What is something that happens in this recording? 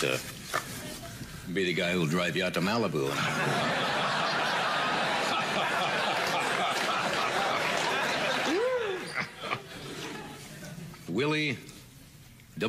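A middle-aged man speaks with animation, close and clear through a microphone.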